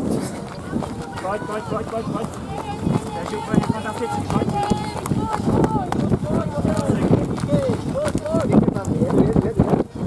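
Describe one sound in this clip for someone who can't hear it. A young man shouts encouragement nearby.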